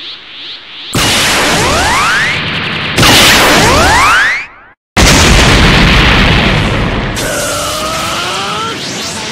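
A fiery blast roars loudly.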